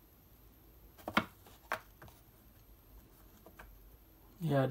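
Cardboard trading cards rustle and tap as a hand flicks through them.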